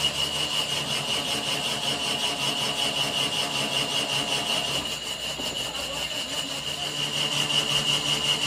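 A lathe spins steadily with a humming motor.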